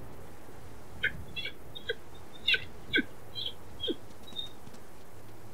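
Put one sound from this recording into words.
A wolf yips several times in short, high bursts.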